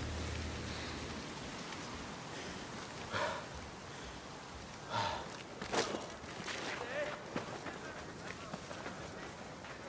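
Footsteps run quickly over sandy ground.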